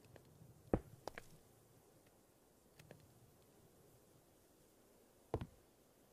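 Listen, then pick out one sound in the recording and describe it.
Short soft clicks and thuds sound as a game menu opens and closes.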